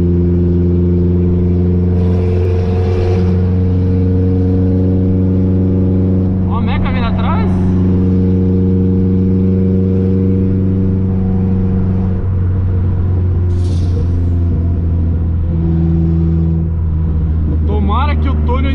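A car engine drones steadily at speed.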